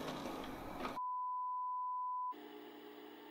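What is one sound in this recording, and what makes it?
A steady electronic beep sounds.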